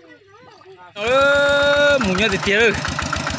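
A small tractor engine chugs loudly.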